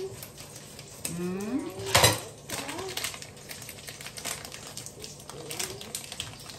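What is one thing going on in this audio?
A plastic bag crinkles and rustles in someone's hands.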